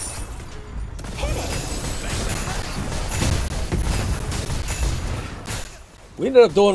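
Swords clash and magic blasts crackle in a fierce fight.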